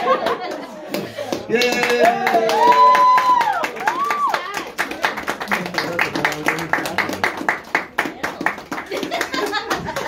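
A young boy claps his hands rhythmically.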